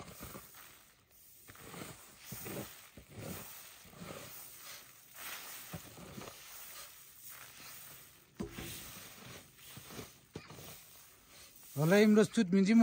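Grain rustles as hands stir it.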